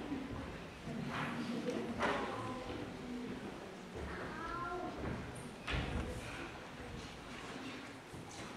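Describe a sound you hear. Many children chatter and call out in a hall.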